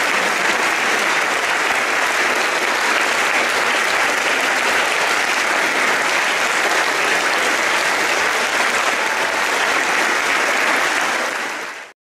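An audience applauds loudly and steadily in an echoing hall, then the applause fades away.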